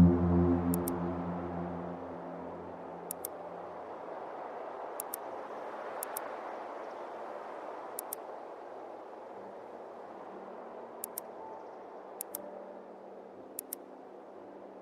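Puzzle buttons click sharply, in quick double clicks every second or two.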